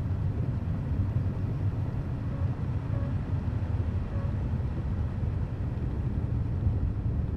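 Tyres crunch and rumble over a bumpy dirt road.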